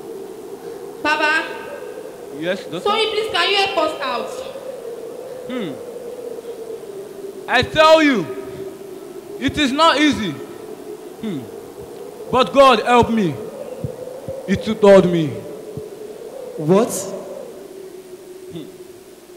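A young man speaks dramatically through a microphone in an echoing hall, in short bursts.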